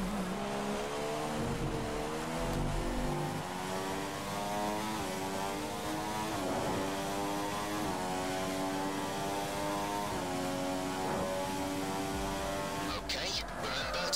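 A racing car engine revs high, rising in pitch through each gear and dropping briefly at each gear change.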